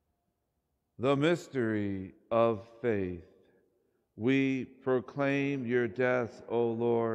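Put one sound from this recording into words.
A middle-aged man chants slowly through a microphone, echoing in a large hall.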